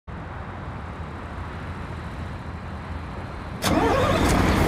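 A bus engine idles with a low steady rumble.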